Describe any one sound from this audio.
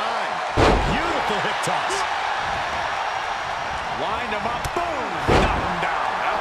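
Heavy bodies slam hard onto a wrestling mat.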